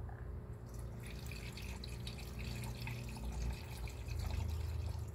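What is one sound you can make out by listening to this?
Liquid pours and gurgles into a funnel.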